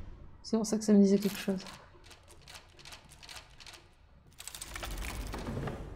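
A key turns in a lock with metallic clicks.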